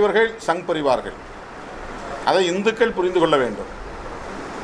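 A middle-aged man speaks with animation into microphones.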